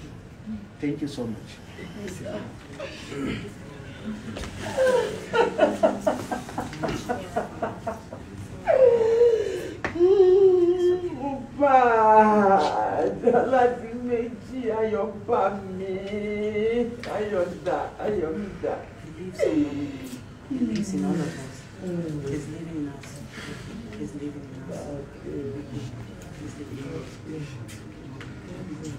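A woman wails and sobs loudly close by.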